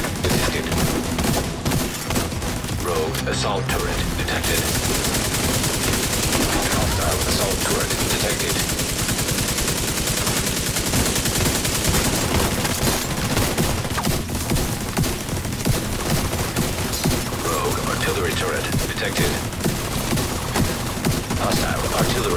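Rapid gunfire rattles and cracks throughout.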